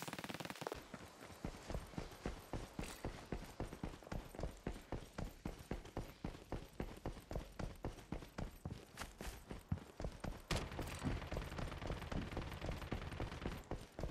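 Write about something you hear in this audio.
Footsteps run quickly and steadily on a hard floor.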